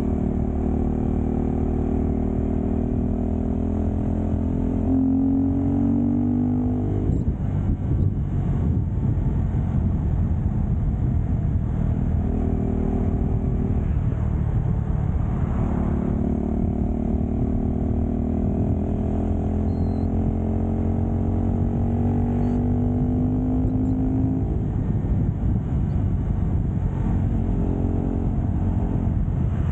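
Wind rumbles and buffets loudly against the rider.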